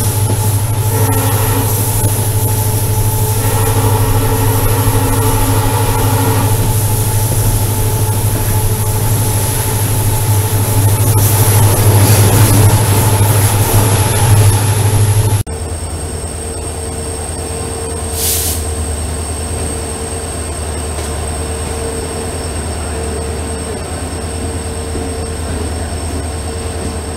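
Train wheels rumble and clatter on the rails.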